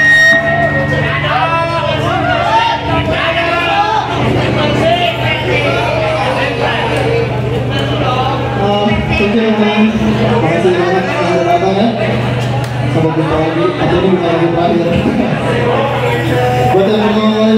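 A rock band plays loudly.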